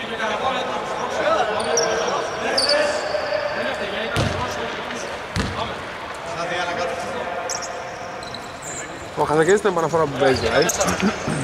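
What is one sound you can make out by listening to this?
Men talk and call out in a large echoing gym.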